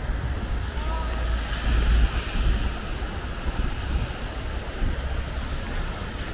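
Car tyres hiss on the wet road.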